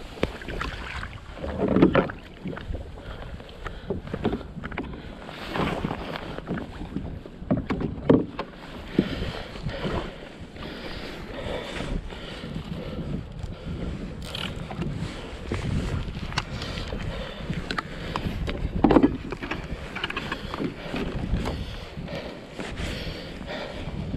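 Wind blows across the microphone outdoors on open water.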